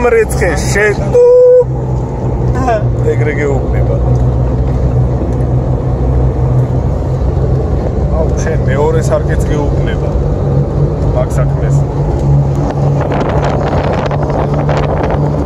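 An SUV's engine hums steadily, heard from inside the cab.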